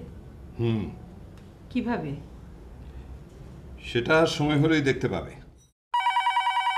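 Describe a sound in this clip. A middle-aged woman speaks nearby.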